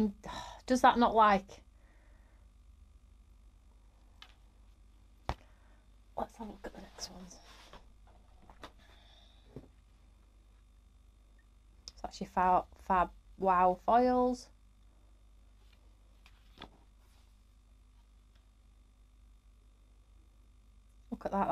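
A woman talks with animation into a microphone, with pauses.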